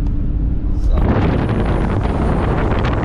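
Wind rushes loudly past an open car window.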